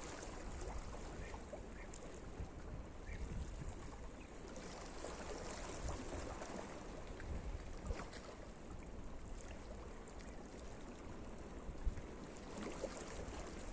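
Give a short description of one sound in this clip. Small waves lap gently against rocks at the shore.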